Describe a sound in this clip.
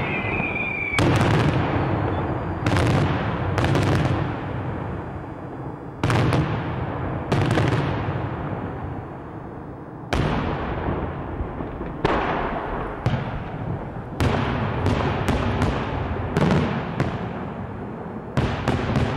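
Loud bangs echo and rumble off the hills.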